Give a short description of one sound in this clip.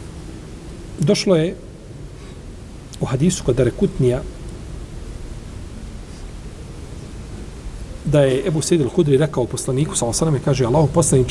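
An elderly man reads aloud slowly into a microphone, with long pauses.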